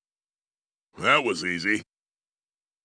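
A giant robot clanks and whirs into a victory pose.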